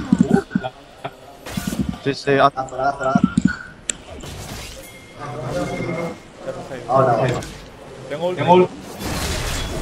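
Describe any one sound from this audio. Magic blasts whoosh and crash during a fight.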